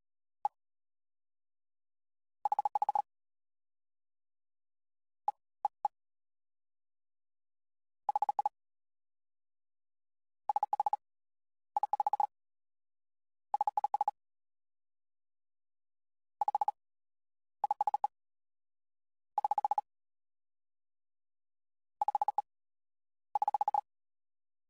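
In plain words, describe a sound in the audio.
Short electronic text blips chatter in quick bursts.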